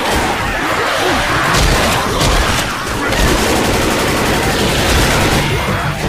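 A crowd of zombies snarls and growls close by.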